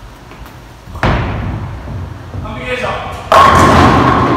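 A bowling ball thuds onto the lane and rolls away.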